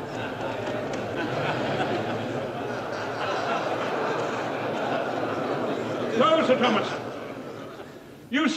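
A large crowd murmurs and chatters loudly in an echoing hall.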